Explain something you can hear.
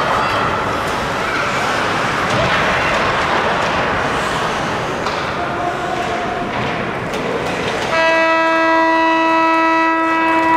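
Skates scrape across the ice.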